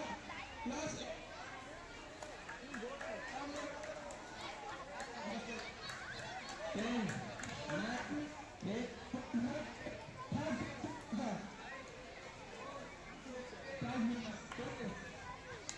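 Teenage boys chatter and shout outdoors.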